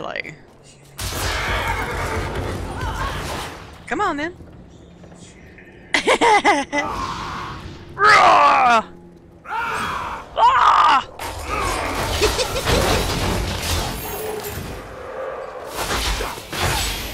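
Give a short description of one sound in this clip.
Magic blasts and combat effects crash and whoosh.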